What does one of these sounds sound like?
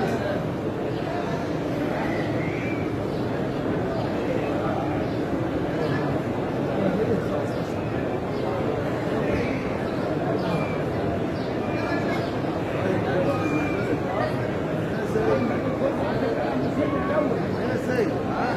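A huge crowd murmurs and chatters steadily in a wide open space.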